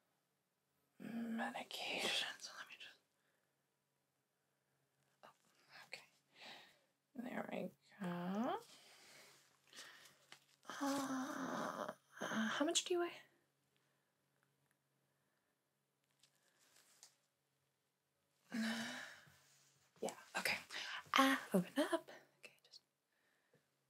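A young woman speaks softly and close to a microphone.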